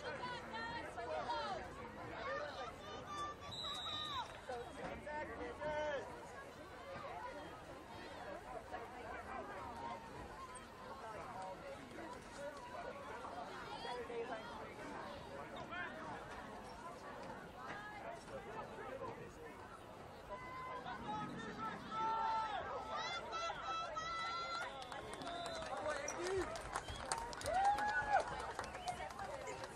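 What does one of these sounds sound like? A crowd of players and spectators talk and shout outdoors.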